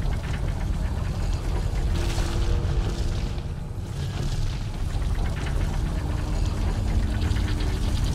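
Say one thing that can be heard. A taut rope creaks and rubs as someone climbs it.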